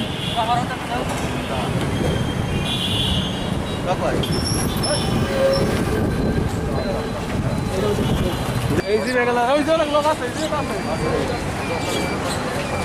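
Street traffic hums in the background.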